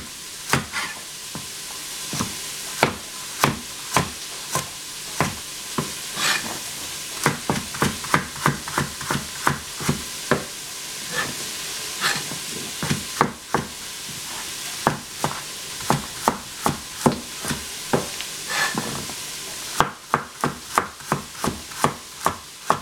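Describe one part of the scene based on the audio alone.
A heavy knife chops through carrots and knocks on a cutting board in a quick, steady rhythm.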